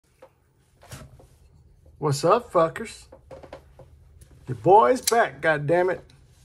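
Hands handle a cardboard box.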